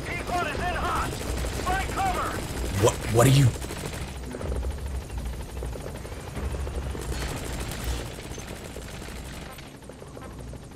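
A helicopter's rotors thump overhead.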